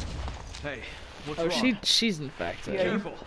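A man asks a question in a concerned voice.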